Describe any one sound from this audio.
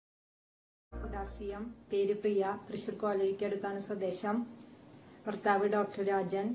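A middle-aged woman speaks calmly and warmly, close to a microphone.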